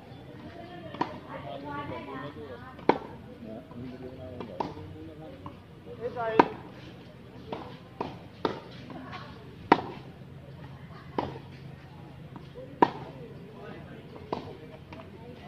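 A tennis racket strikes a ball with sharp pops, outdoors.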